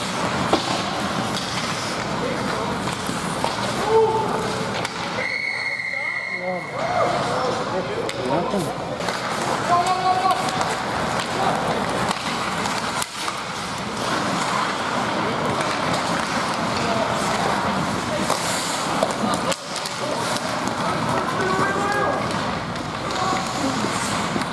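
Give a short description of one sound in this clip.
Skates scrape and swish across the ice in a large echoing rink.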